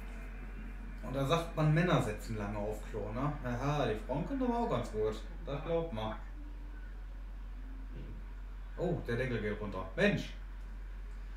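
A young man talks animatedly and close by.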